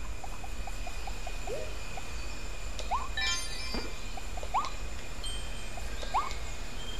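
Soft footsteps patter quickly in a game.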